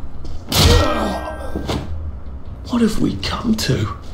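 A body falls and thuds heavily onto the floor.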